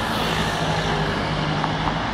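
Traffic rumbles by steadily outdoors.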